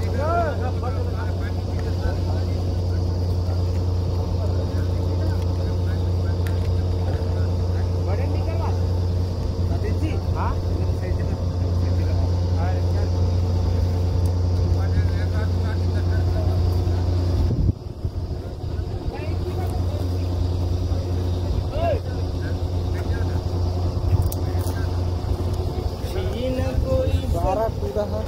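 A drilling rig's engine drones loudly and steadily outdoors.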